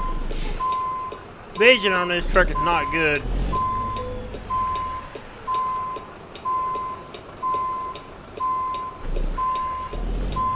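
A truck's reverse alarm beeps steadily and repeatedly.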